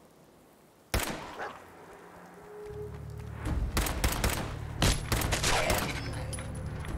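Gunshots in a video game fire in sharp bursts.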